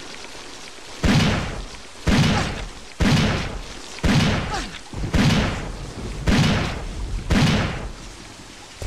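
Gunshots ring out one after another.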